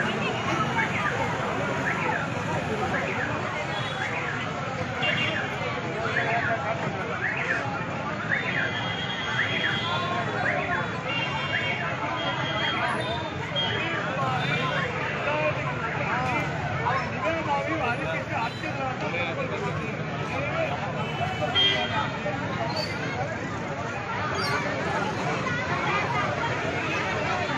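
Many people talk over one another close by.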